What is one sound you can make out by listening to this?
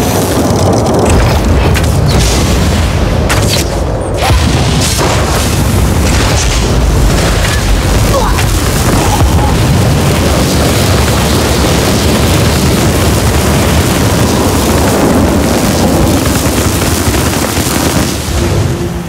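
Electric magic crackles and bursts loudly.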